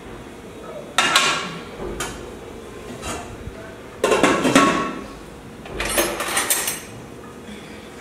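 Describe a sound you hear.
Pots and dishes clatter and clink.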